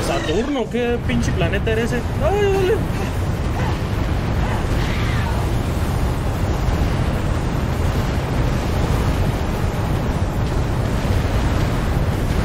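Deep, steady rumbling game sound effects play.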